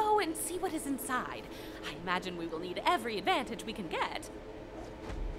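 A young woman speaks with animation, heard through a speaker.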